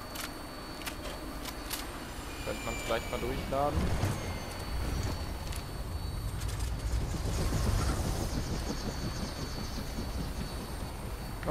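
A helicopter's rotors roar and thump close by.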